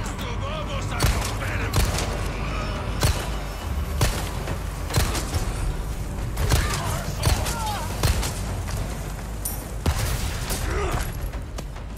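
Gunshots crack sharply again and again.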